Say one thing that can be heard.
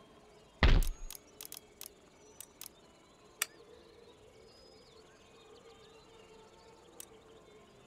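Game menu buttons click sharply several times.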